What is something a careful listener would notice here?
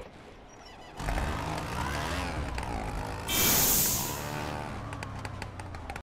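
A scooter engine starts and hums steadily as it rides off.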